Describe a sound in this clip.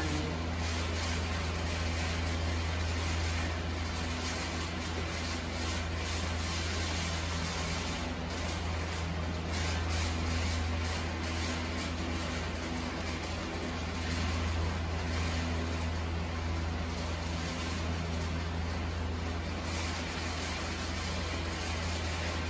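Noodles and vegetables sizzle steadily in a hot pan.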